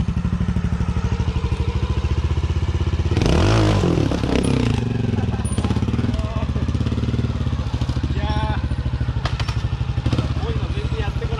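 A trial motorbike engine chugs steadily nearby.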